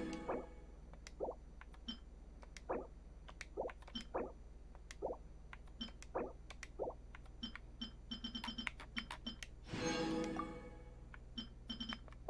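Short soft menu clicks and blips sound again and again.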